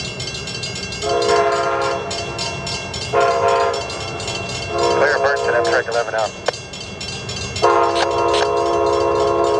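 A train horn blows several long blasts as the train approaches.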